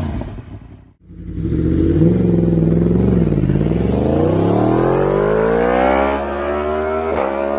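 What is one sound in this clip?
A motorcycle engine roars while accelerating, its pitch climbing through the gears.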